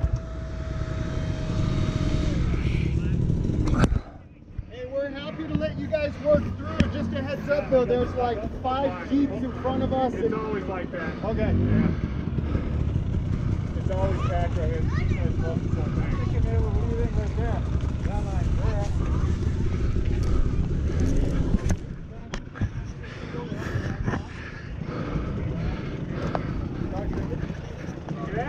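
A dirt bike engine idles and revs close by.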